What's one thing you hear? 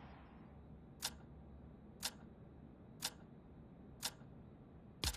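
A game countdown beeps once each second.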